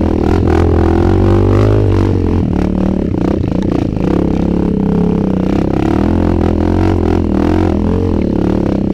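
A dirt bike engine revs loudly up close, rising and falling.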